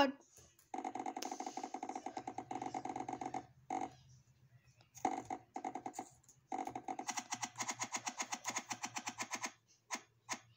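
A video game plays rapid, repeated popping sound effects as blocks are placed.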